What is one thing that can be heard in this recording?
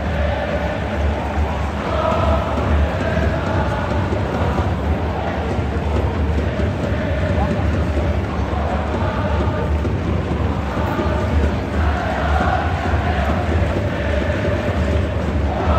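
A large stadium crowd sings a chant together loudly.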